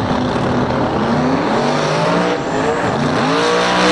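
A racing car engine revs up sharply.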